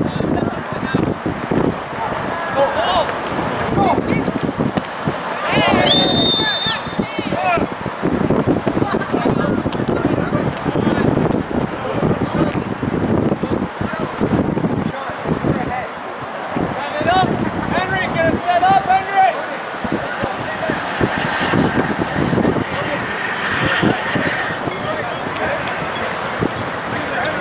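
Young men shout to one another outdoors, some way off.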